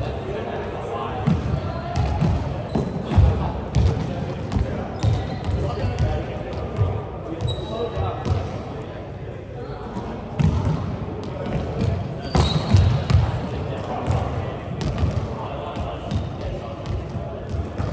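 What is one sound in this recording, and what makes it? A volleyball is struck by hands, echoing in a large hall.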